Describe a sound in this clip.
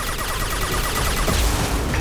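A shot crackles with an electric zap.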